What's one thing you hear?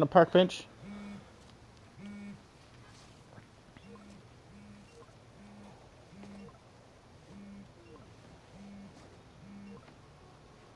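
A phone buzzes in short repeated pulses.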